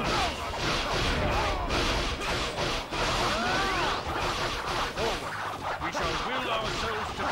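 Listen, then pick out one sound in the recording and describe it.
Blades swish and clang repeatedly in a loud, busy fight.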